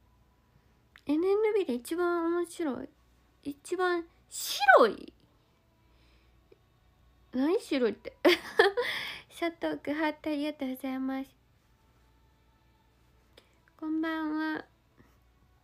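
A young woman talks close to a microphone in short, lively bursts.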